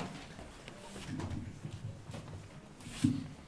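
A man speaks to a hall.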